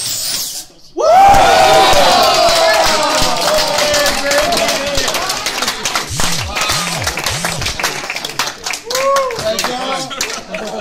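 A crowd of men cheers and shouts loudly.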